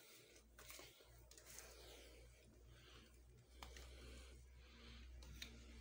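A plastic hose rustles and knocks as it is handled.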